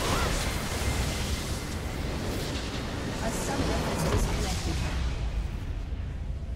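Loud game battle effects blast, crackle and crash.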